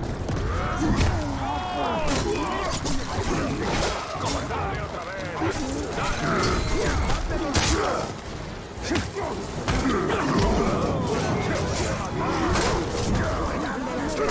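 Monsters grunt and roar as they fight.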